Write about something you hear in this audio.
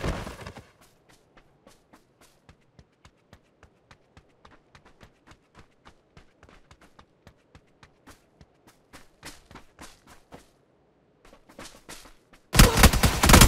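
Footsteps crunch steadily on dry ground.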